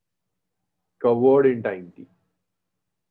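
A man speaks briefly and calmly through a microphone on an online call.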